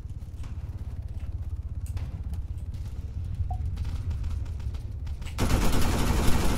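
Heavy boots thud on stairs in quick steps.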